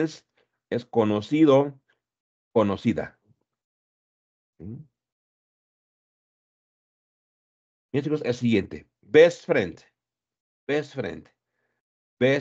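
A man speaks calmly in short phrases over an online call.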